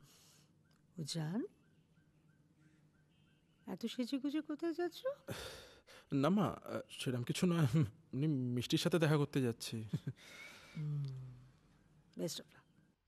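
A middle-aged woman speaks with feeling, close by.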